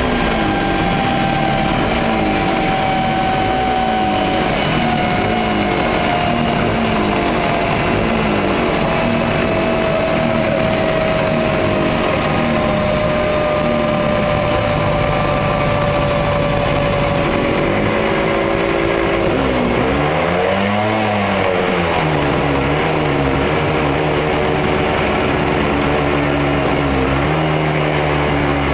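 A motorcycle engine runs loudly close by, its revs rising and falling.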